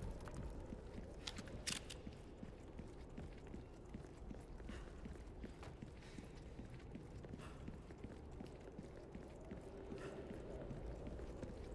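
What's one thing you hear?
Footsteps crunch steadily on gravel and dirt.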